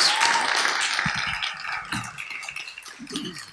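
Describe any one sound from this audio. An audience applauds in a large hall, and the applause fades.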